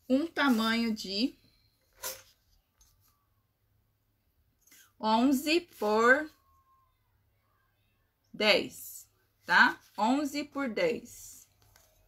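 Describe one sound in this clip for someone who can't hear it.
A young woman speaks calmly and close by, in short phrases.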